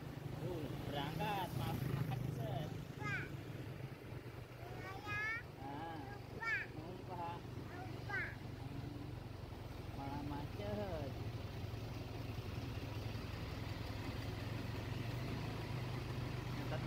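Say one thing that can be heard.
Diesel coach buses idle close by.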